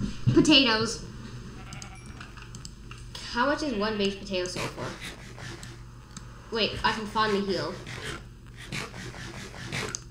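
Crunchy eating sounds repeat quickly.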